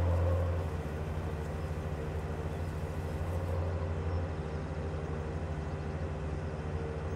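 A truck engine drones steadily at low pitch while driving.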